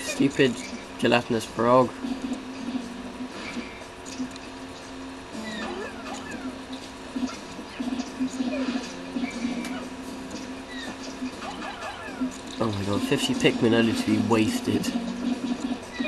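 Small cartoon creatures squeak and chirp in high voices.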